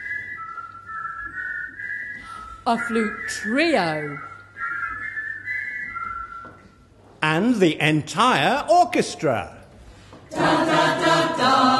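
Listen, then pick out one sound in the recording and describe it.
A mixed choir of men and women sings, with voices swooping up and down in pitch.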